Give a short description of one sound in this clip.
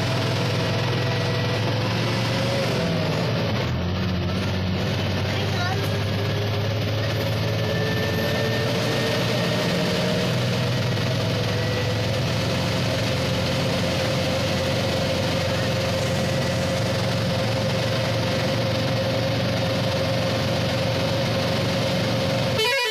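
A vehicle engine hums steadily while driving along a winding road.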